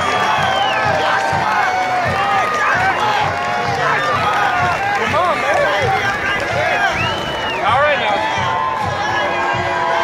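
Young men shout and chatter excitedly close by.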